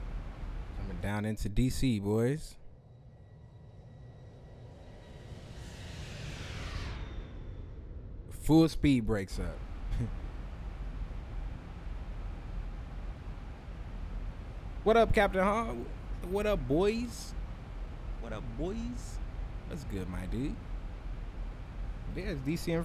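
A man talks into a microphone in short bursts.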